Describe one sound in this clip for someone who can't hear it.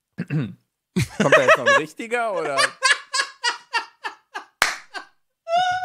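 A man laughs through a microphone.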